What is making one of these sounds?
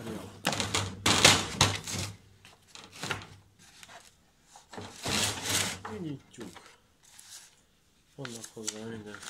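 A plastic case clatters as hands open it and move things inside.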